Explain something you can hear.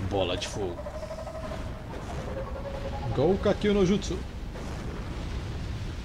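Fireballs burst with a roaring whoosh.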